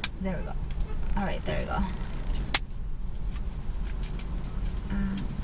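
A plastic wrapper crinkles in a woman's hands.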